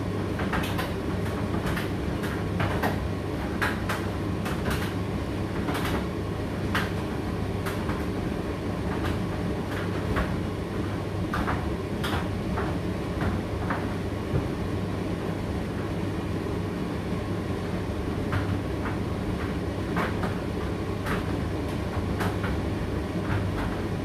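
A condenser tumble dryer hums and whirs while it runs a drying cycle.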